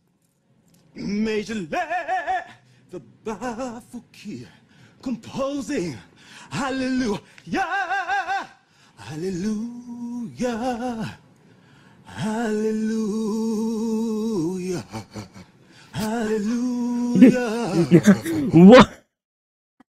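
A young man sings in short, wavering phrases.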